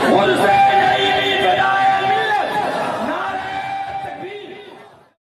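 A man chants in a long, melodic voice through a microphone and loudspeakers, fading out at the end.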